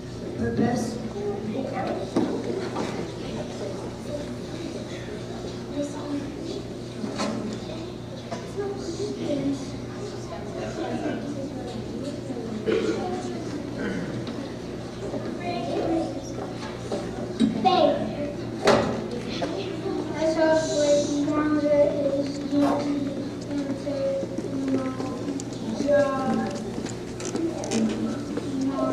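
A children's choir sings together in a large echoing hall.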